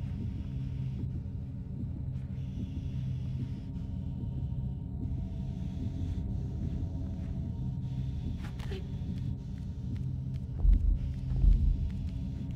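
Small footsteps patter softly on a wooden floor.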